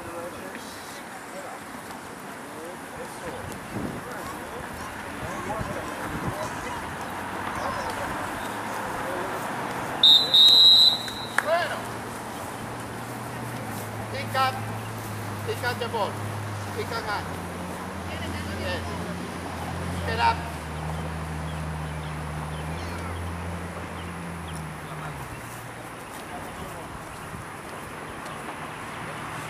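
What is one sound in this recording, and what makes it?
Children shout and call out outdoors.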